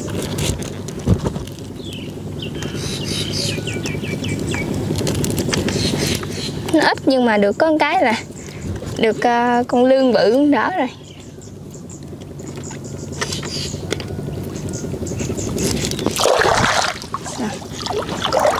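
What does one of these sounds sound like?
Water splashes softly as hands work in it.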